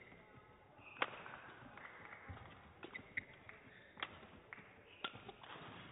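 A racket strikes a shuttlecock with sharp smacks in a large echoing hall.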